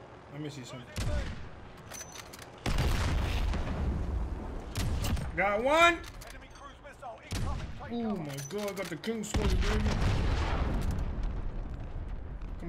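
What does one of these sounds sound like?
Sniper rifle shots boom loudly.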